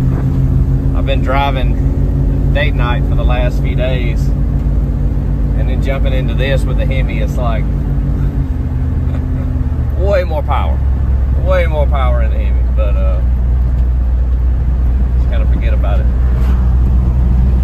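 A man talks nearby with animation, inside the car.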